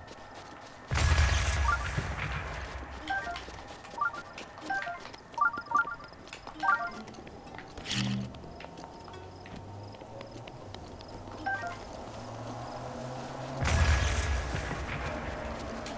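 A bomb explodes with a deep, rumbling boom.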